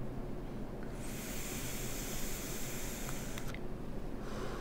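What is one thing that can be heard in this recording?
A man draws in sharply through an electronic cigarette with a soft hiss.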